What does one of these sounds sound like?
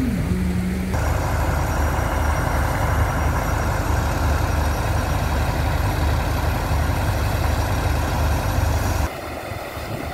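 A pump engine drones steadily close by.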